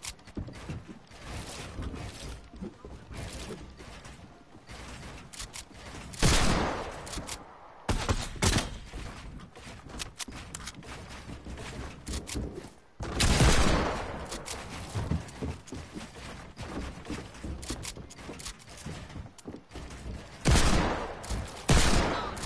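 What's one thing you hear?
Game building pieces snap into place in quick clicks.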